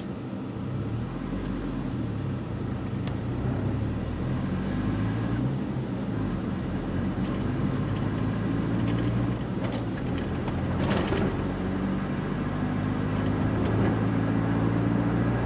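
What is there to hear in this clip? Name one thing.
A car engine revs up and pulls away, its pitch rising and falling through the gears.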